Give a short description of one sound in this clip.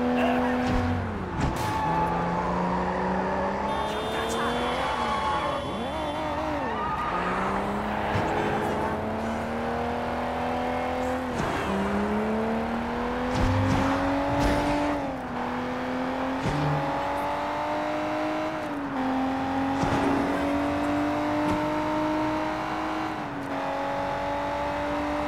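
A car engine revs hard, rising in pitch through each gear and dropping at each shift.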